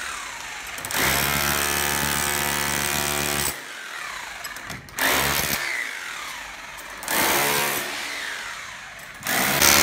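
An electric demolition hammer chisels through tile and concrete in short bursts.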